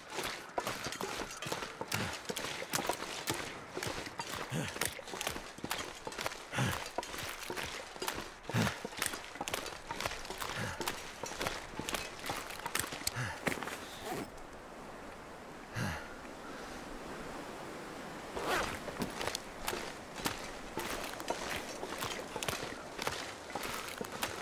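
Footsteps crunch on snow and ice.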